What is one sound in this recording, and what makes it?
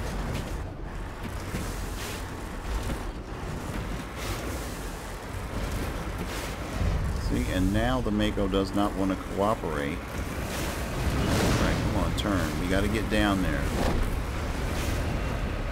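A vehicle engine rumbles low and steady as wheels roll over rough ground.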